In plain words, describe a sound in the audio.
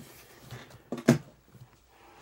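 Clothing rustles and knocks against the microphone.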